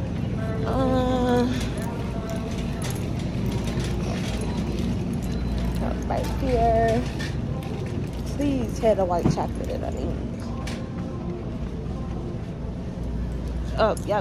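A young woman speaks casually close to the microphone.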